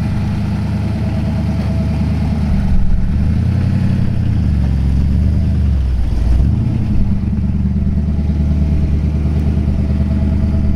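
An old car's engine rumbles steadily as the car rolls slowly away.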